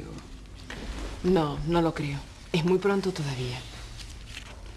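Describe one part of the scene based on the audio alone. A woman speaks quietly.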